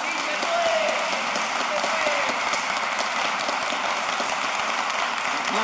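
A crowd applauds and cheers loudly in a large echoing hall.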